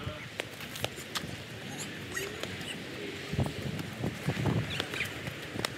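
Sneakers patter and scuff on pavement as runners sprint.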